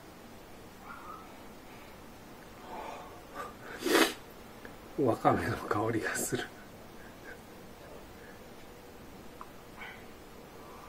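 A man slurps soup from a bowl.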